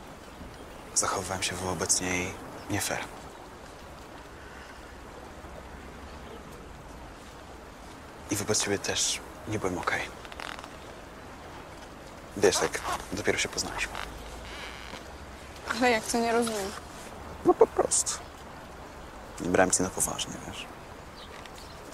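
A teenage girl speaks calmly, close by.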